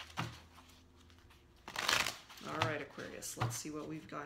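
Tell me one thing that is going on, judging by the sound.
Playing cards shuffle with a soft riffling rustle.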